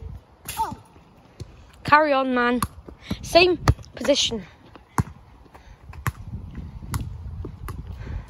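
A football bounces on tarmac.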